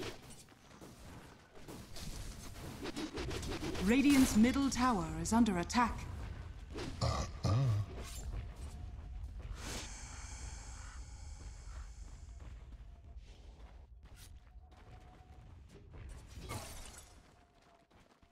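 Weapons clash in a fast fight.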